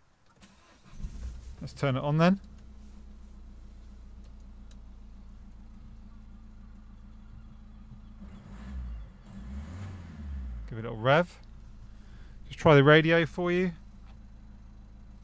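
A car engine starts and idles steadily.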